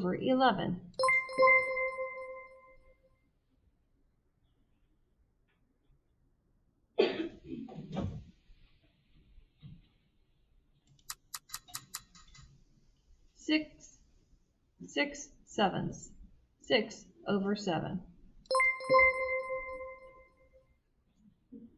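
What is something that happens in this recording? A bright electronic chime rings out twice.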